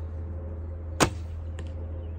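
A bowstring snaps as an arrow is released.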